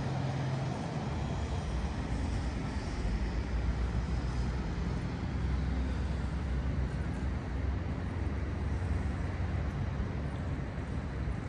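Wind rumbles and buffets outdoors.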